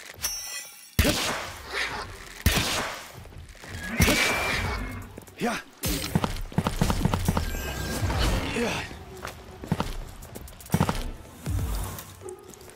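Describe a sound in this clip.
Water splashes as creatures fight in a lake.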